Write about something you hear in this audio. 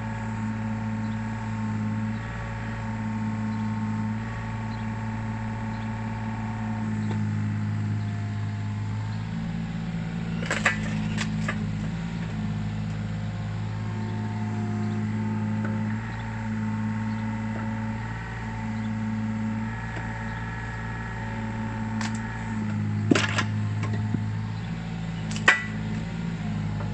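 A diesel engine drones steadily and whines with hydraulic strain.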